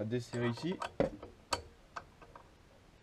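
Metal clinks sharply as a lathe chuck is turned by hand.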